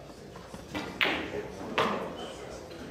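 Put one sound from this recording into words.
Pool balls clack together sharply.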